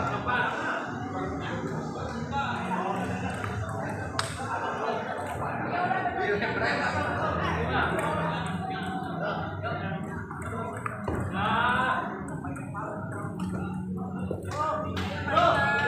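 A ping pong ball clicks back and forth off paddles and a table in a large echoing hall.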